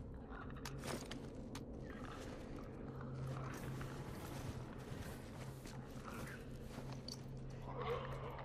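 Footsteps crunch softly through snow.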